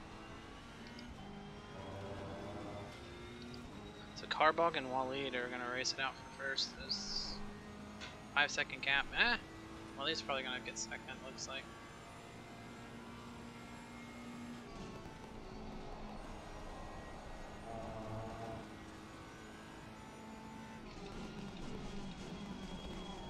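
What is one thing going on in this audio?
A racing car engine hums steadily as it drives.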